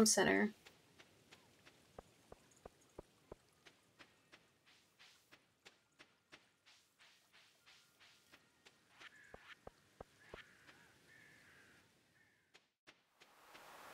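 Footsteps tap quickly and steadily on the ground.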